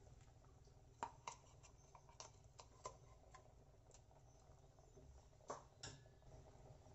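A spoon scrapes and taps against a pan.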